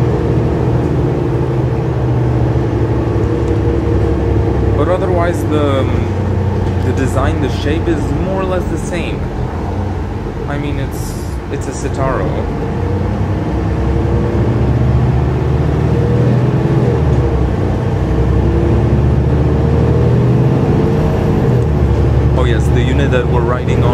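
The bus body rattles and squeaks over the road.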